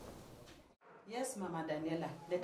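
A woman speaks calmly and close.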